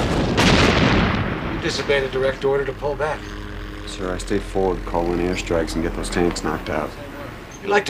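A middle-aged man speaks tensely nearby.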